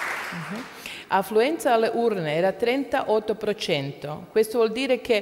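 A woman speaks calmly into a microphone over loudspeakers in an echoing hall.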